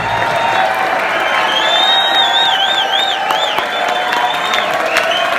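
A live band plays loudly in an echoing hall.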